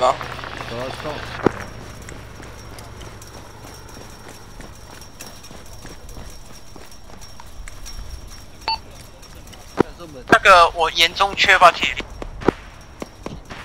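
Footsteps thud on hard ground as a soldier runs.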